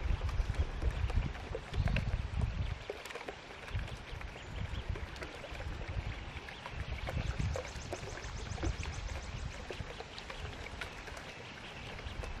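Ducks dabble and splash quietly in water.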